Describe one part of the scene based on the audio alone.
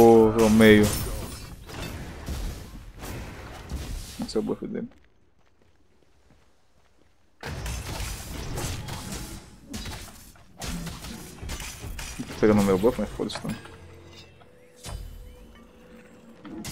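Magic blasts whoosh and crackle in bursts.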